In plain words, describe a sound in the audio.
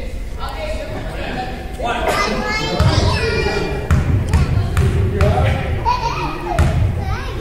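Young players shout and call out across the court.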